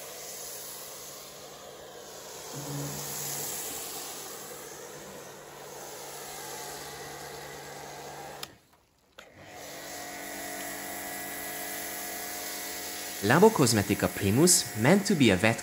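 A pressure washer hums and hisses as it sprays foam.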